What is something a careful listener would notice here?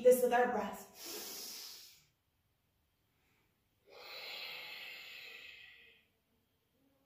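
A woman breathes out slowly and audibly.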